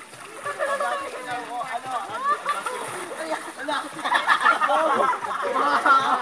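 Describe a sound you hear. Several young people talk and shout excitedly outdoors.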